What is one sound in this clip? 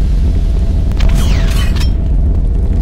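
A gun fires a quick burst of shots.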